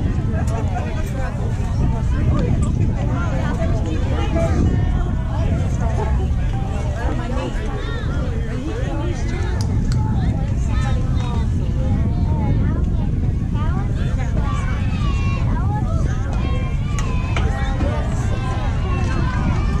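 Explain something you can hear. Young girls call out and chatter across an open field.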